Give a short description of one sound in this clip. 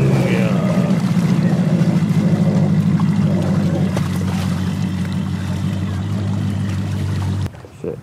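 An outboard motor hums steadily and then cuts off.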